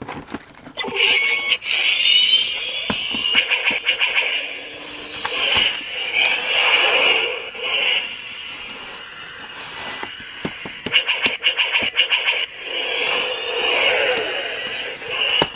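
A toy's small speaker plays electronic sound effects.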